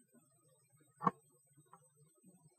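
A tape player's key clicks as it is pressed down.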